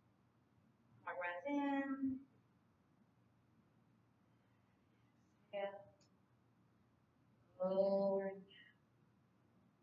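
A woman speaks calmly in short phrases, with pauses between them.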